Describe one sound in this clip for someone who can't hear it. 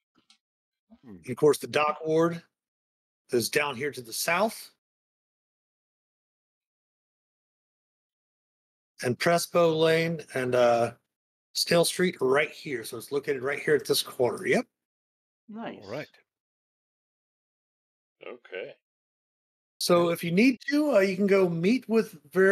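Several men talk by turns over an online call, speaking with animation.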